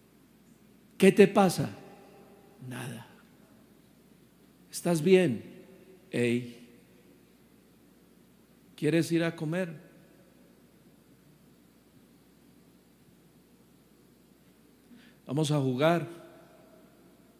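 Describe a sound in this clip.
A man speaks slowly and with feeling into a microphone, in short phrases with long pauses, in a slightly echoing room.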